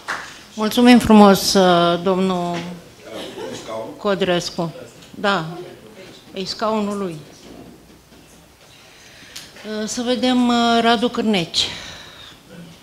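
An elderly woman speaks with feeling into a microphone.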